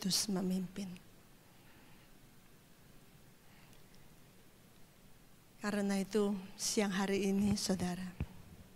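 A woman speaks into a microphone with animation, heard through a loudspeaker in a large hall.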